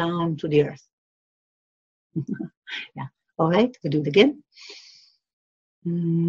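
A middle-aged woman speaks calmly up close.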